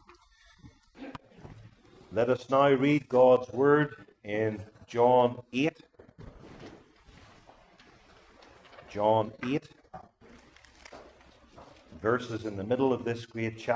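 An elderly man speaks calmly through a microphone in a room with a slight echo, pausing between phrases.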